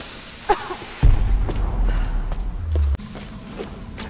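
A deep explosion rumbles.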